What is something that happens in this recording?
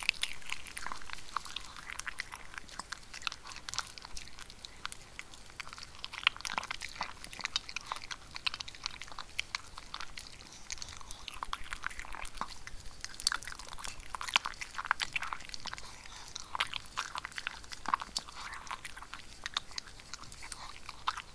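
A dog crunches dry food close by.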